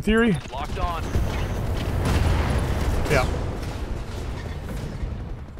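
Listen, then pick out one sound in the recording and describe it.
Missiles hit the ground and explode with a low, rumbling roar.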